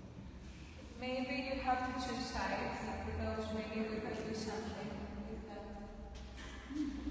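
A young woman speaks with animation to a group in an echoing room.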